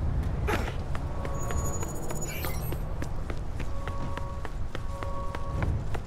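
Running footsteps patter on pavement.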